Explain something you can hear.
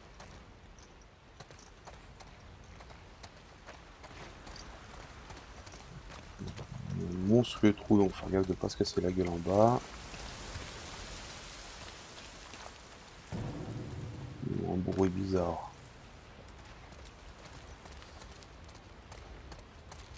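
Footsteps crunch over scattered debris.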